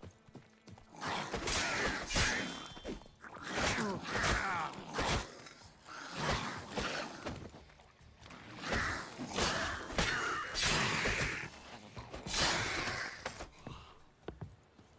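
A sword swings and strikes creatures in a fierce fight.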